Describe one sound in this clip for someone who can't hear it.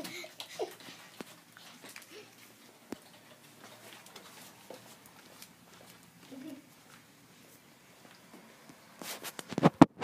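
Footsteps patter softly on a hard floor.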